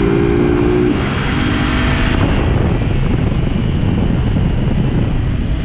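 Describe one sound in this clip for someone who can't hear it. Wind roars across the microphone outdoors.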